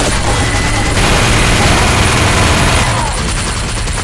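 A heavy machine gun fires a rapid burst.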